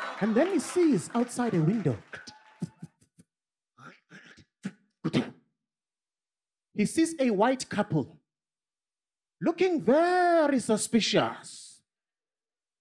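A man speaks animatedly into a microphone, with pauses and exaggerated voices.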